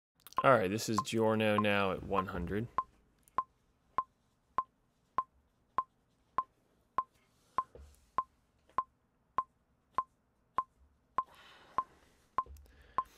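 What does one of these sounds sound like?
A keyboard's metronome clicks steadily.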